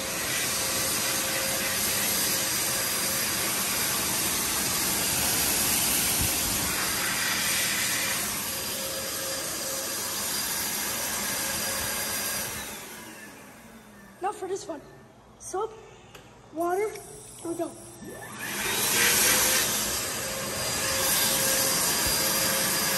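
A hand dryer blows air with a loud, steady whoosh.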